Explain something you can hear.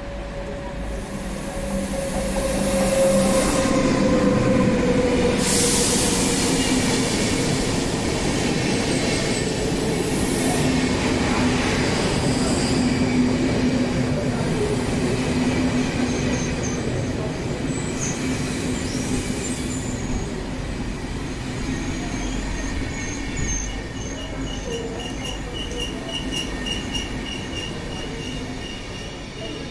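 An electric train rolls in and slowly passes close by with a steady rumble.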